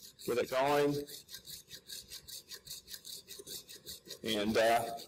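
A hacksaw cuts through a plastic pipe with quick, rhythmic strokes.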